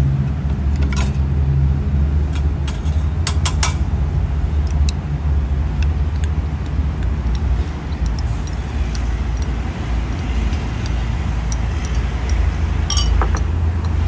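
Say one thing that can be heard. A spoon clinks against a glass jug.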